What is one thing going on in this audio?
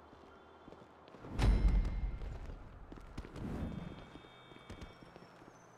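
Footsteps patter quickly on pavement.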